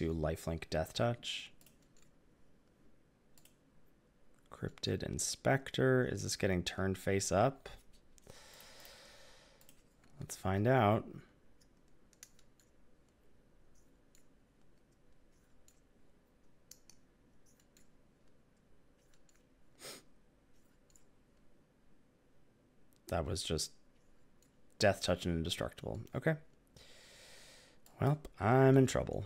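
A man talks calmly through a headset microphone, in short bursts with pauses.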